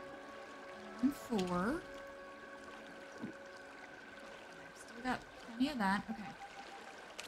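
A young woman talks briefly into a close microphone.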